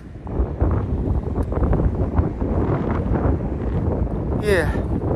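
A young man speaks close by, outdoors.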